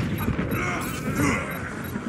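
A laser beam hums loudly.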